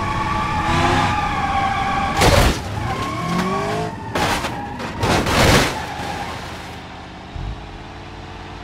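A car engine whines at high revs.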